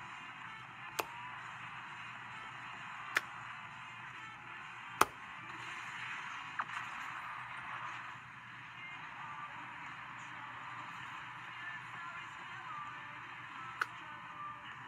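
Plastic buttons click when pressed.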